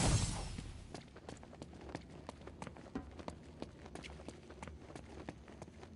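Footsteps thud quickly on a hard floor as a character runs.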